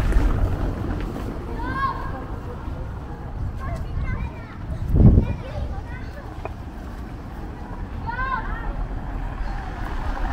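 A car rolls over cobblestones nearby.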